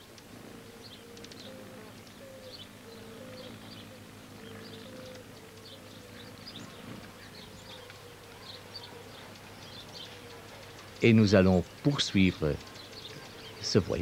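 A hummingbird's wings hum softly as it hovers.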